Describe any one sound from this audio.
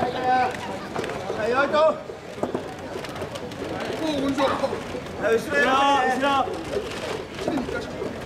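A crowd of men chant loudly in rhythm close by.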